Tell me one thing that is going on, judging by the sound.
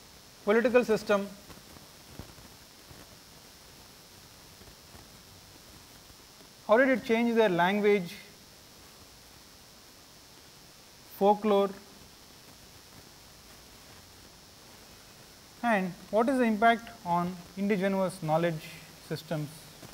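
A man speaks calmly in short bursts, heard through a microphone in an echoing room.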